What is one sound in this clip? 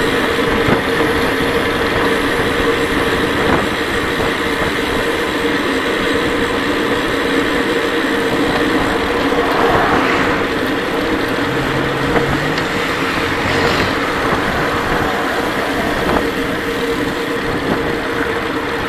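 Bicycle tyres hum steadily on smooth pavement.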